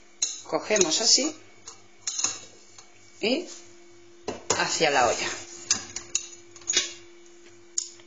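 A metal spoon stirs and scrapes inside a metal pot.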